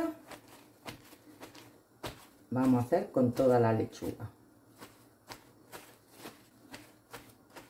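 A paper towel rustles and crinkles.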